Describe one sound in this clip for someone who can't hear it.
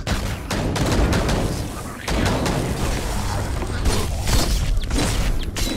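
Heavy blows and impacts thud and crash in a fight.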